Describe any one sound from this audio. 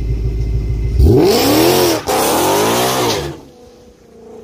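A car engine roars as the car speeds away.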